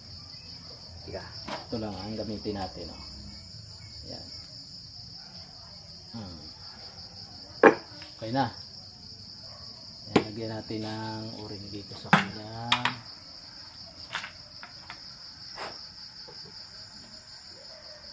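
Metal parts clink and knock against a table.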